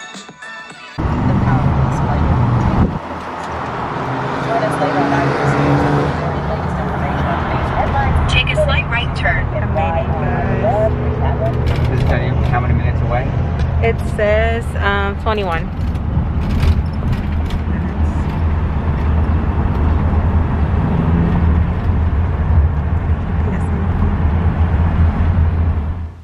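A car engine hums with a steady low road rumble.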